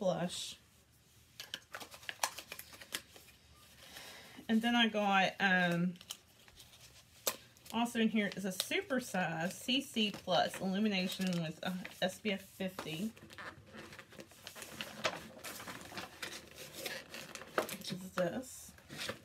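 Small objects clink and rustle as a woman handles them.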